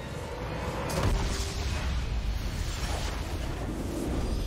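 A triumphant victory fanfare swells with a deep boom.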